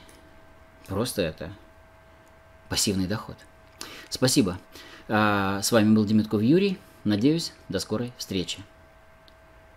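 A middle-aged man speaks calmly and close up, through a microphone.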